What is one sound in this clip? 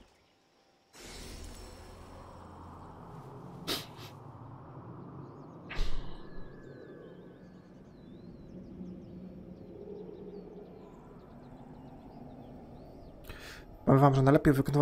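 Air rushes past in a long whoosh.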